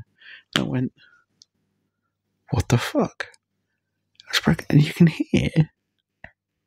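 A man whispers close into a microphone.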